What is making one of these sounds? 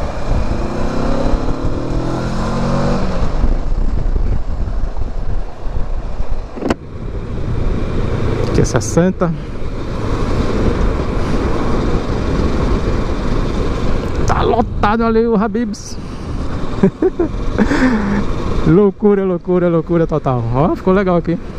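A motorcycle engine rumbles and revs up close.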